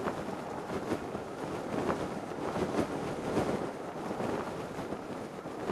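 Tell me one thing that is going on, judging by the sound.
Wind rushes steadily past a parachute.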